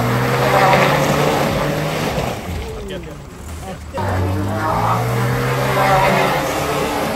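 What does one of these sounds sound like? A truck engine revs hard.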